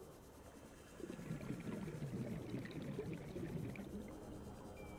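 Bubbles churn and gurgle loudly.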